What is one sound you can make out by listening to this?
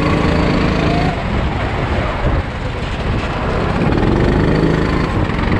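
A go-kart engine roars loudly up close, rising and falling in pitch.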